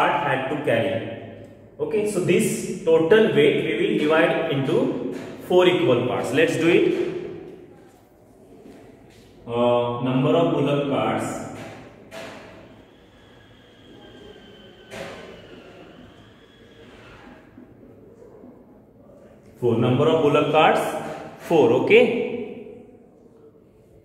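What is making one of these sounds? A young man speaks clearly and steadily, close by.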